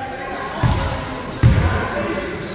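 A basketball thuds on a hard floor in a large echoing hall.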